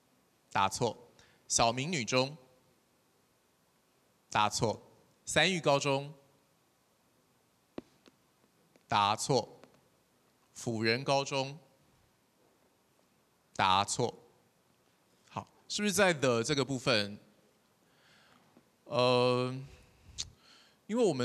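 A man speaks in short, loud phrases through a microphone, with pauses between them.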